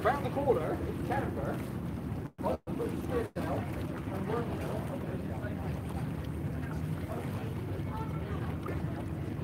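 Water laps against a harbour wall.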